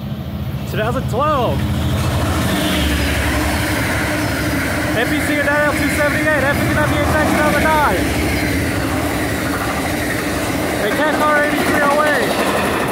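Train wheels squeal and clatter on the rails.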